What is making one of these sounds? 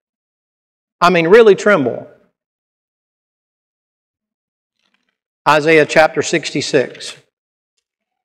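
An older man speaks calmly through a microphone, with long pauses.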